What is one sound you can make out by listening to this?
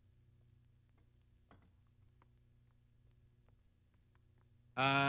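Footsteps knock softly on a wooden floor indoors.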